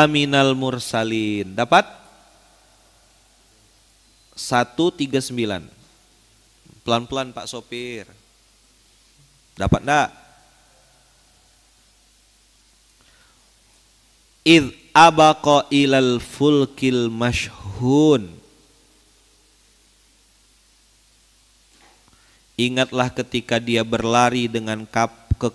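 A young man speaks through a microphone with animation, pausing between phrases.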